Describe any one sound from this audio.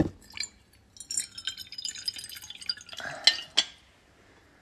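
Liquid pours and splashes into a glass.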